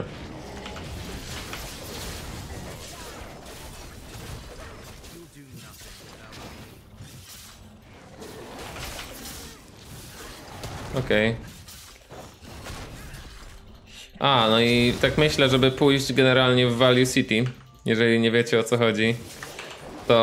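Game combat sound effects clash and crackle.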